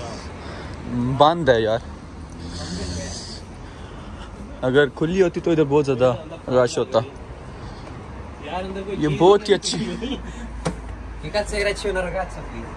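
A young man talks close by, with animation.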